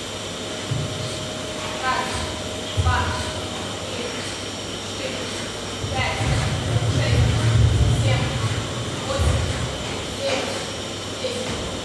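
A pull-up bar rattles and creaks as a man swings on it.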